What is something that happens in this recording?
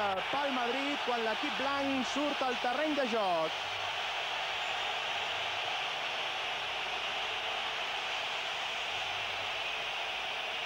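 A large stadium crowd roars and cheers steadily outdoors.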